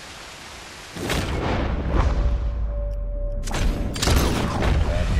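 A rifle fires with loud booming shots.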